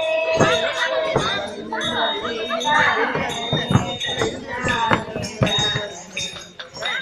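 Feet stamp on a wooden stage.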